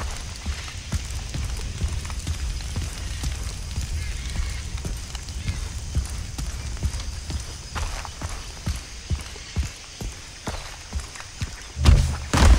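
Footsteps thud steadily on earth and stone.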